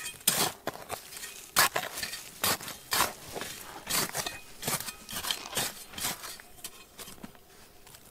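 Loose pebbles rattle and tumble.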